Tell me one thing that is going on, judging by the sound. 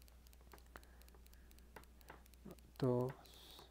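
A crochet hook clicks softly against yarn.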